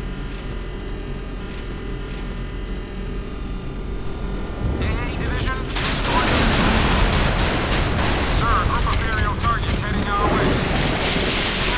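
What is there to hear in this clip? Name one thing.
Water rushes and splashes against a hull.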